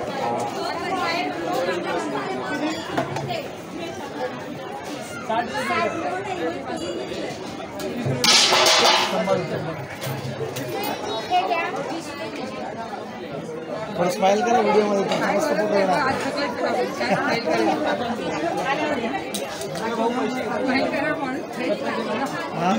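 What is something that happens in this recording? A crowd of men and women chatters close by.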